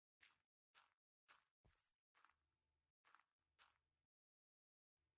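A pickaxe strikes stone in quick, repeated blows.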